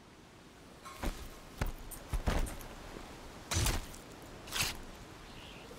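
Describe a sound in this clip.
A blade stabs into a metal machine with heavy thuds.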